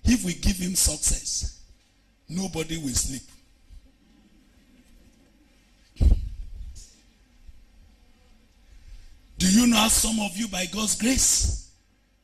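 A man speaks loudly and with animation through a microphone, in short bursts.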